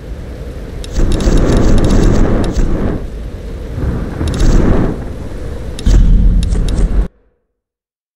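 Waves surge and crash in loud swells.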